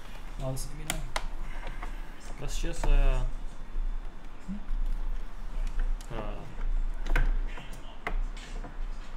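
Plastic parts click and clack.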